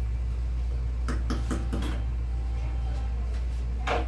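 A wooden spoon clinks against a metal pot.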